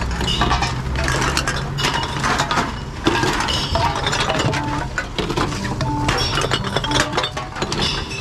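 A recycling machine hums steadily.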